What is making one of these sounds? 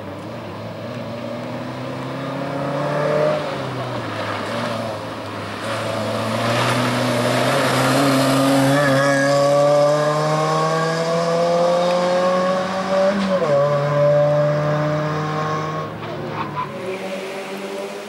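A rally car engine roars and revs hard as the car speeds past.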